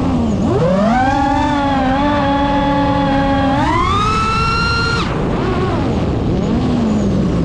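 A drone's motors whine loudly, rising and falling in pitch as it speeds up and slows down.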